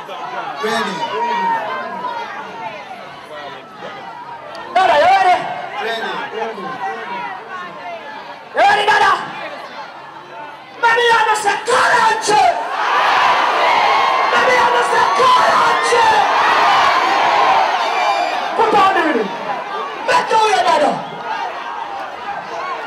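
A man shouts into a microphone over loudspeakers, calling out to a crowd.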